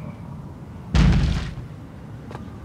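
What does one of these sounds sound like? A heavy crate lands with a loud thud.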